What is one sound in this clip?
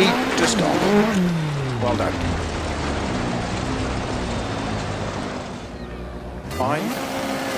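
A rally car engine roars, then winds down as the car slows to a stop.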